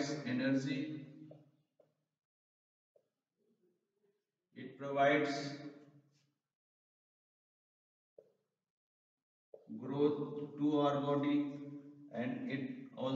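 A man speaks calmly, pausing between phrases.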